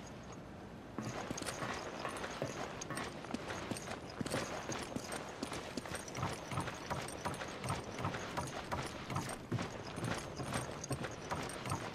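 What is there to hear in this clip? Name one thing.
Heavy footsteps run quickly over wooden planks and hard ground.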